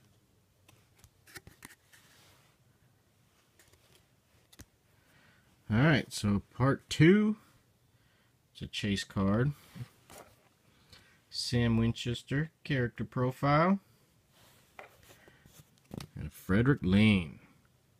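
Plastic card sleeves rustle and crinkle softly in hands.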